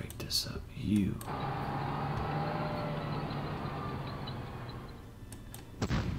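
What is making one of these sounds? A tank engine rumbles and clanks as it drives.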